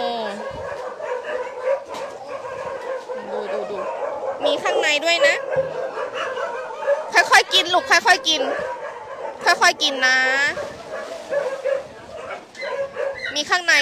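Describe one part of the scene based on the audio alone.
Dogs whine and yelp in high, wavering cries.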